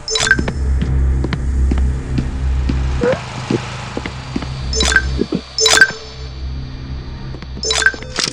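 Footsteps thud steadily across a wooden floor.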